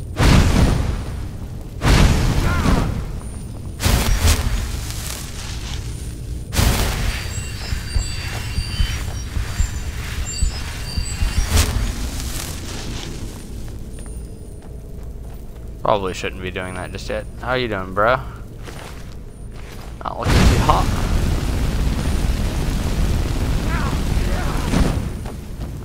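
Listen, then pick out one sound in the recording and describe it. Flames roar and whoosh in bursts.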